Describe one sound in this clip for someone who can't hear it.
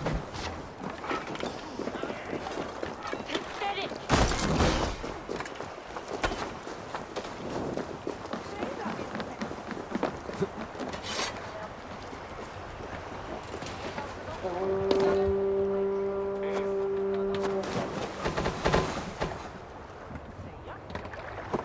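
Water laps against a longship's hull.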